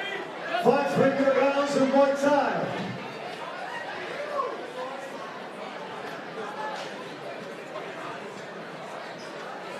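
A crowd murmurs.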